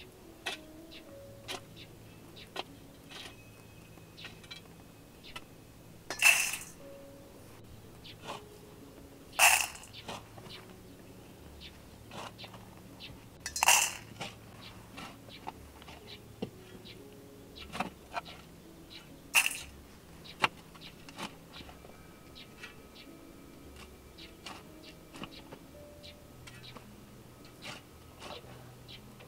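Dry grain rattles and rustles as hands sort it.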